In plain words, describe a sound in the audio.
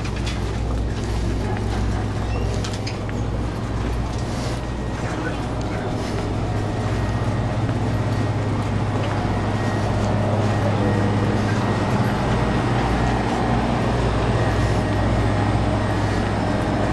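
Shopping cart wheels rattle and roll along a hard floor.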